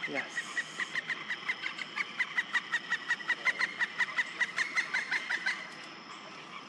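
A bird of prey calls close by with rapid, repeated shrill chirps.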